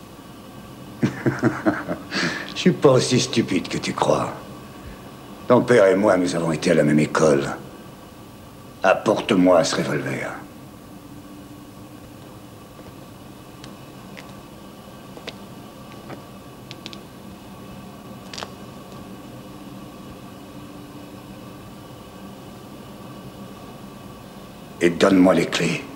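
A man speaks tensely and menacingly, close by.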